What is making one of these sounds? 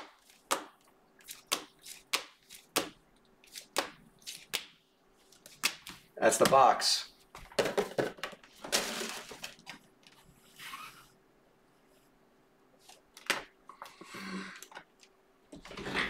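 Hard plastic card cases click and tap as they are handled.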